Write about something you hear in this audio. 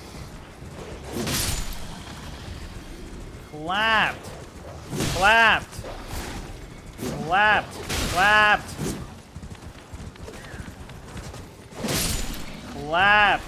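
A sword swooshes through the air in quick swings.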